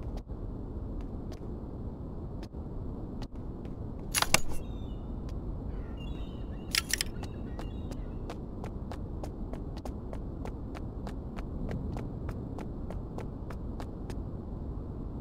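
Quick footsteps tap on a hard surface.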